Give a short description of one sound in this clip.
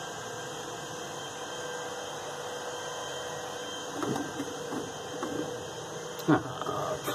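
An electrical unit hums steadily.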